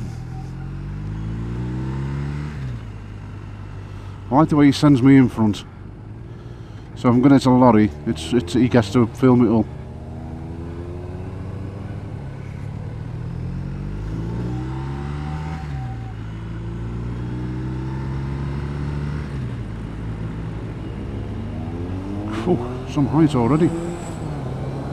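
A motorcycle engine hums steadily, its pitch rising and falling.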